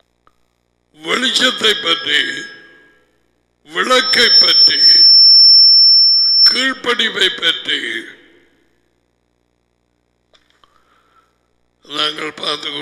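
A middle-aged man speaks forcefully into a close headset microphone, in bursts with pauses.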